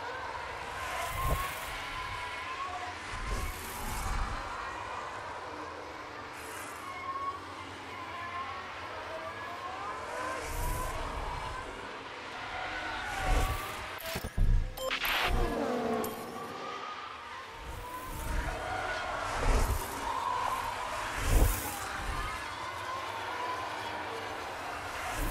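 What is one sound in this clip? Racing car engines whine and roar as cars speed past.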